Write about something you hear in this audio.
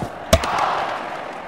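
A ball knocks over the stumps with a sharp crack.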